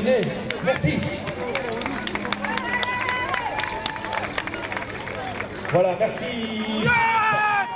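A crowd of spectators cheers and calls out.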